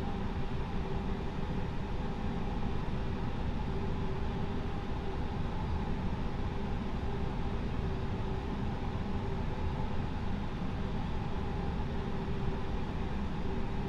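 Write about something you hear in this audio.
An aircraft engine hums steadily in the cockpit.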